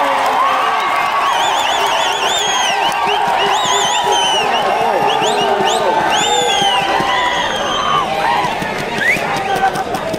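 Spectators whistle shrilly.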